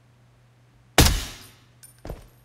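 A rifle fires a single loud shot with a sharp echo.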